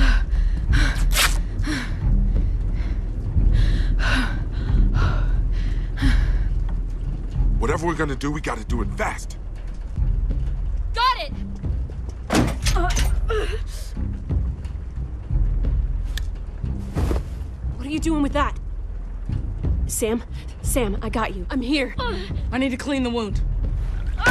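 A young woman speaks tensely and urgently.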